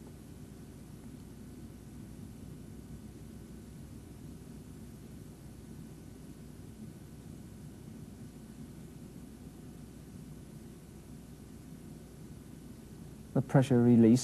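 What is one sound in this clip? A hydraulic press hums low and steady as it squeezes.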